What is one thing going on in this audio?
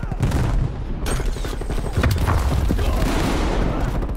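A shotgun fires in short blasts.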